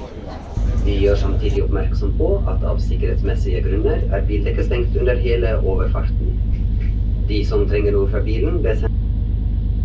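A man talks nearby over the wind.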